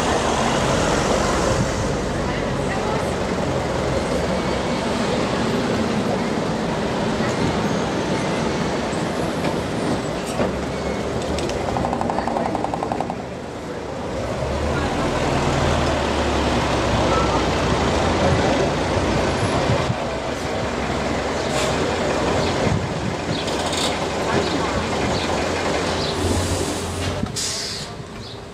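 An old bus engine rumbles and chugs as the bus drives slowly past close by.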